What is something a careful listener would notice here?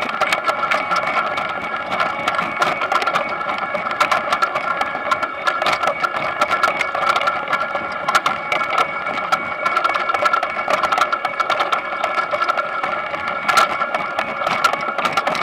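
A harvesting machine rumbles and clatters steadily.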